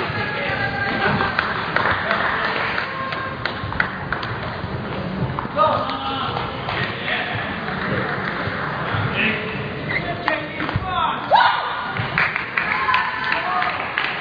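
A woman shouts and cheers.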